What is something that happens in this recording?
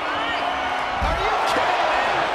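A heavy body slams down with a deep thud.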